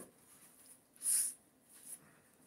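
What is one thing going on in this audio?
A man blows his nose into a tissue.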